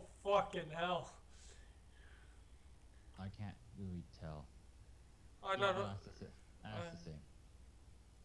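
A young man talks casually into a nearby microphone, in short bursts.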